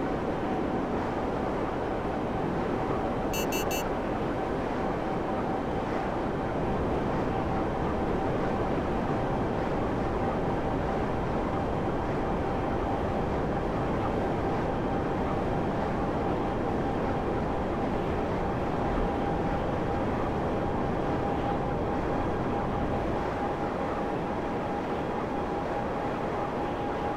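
A jet engine roars steadily with a droning hum.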